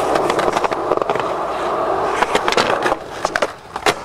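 A skateboard grinds along a concrete ledge.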